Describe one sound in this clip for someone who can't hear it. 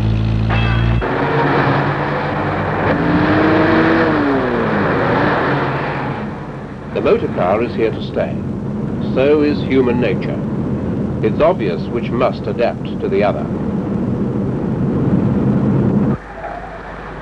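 Car engines hum as traffic drives past.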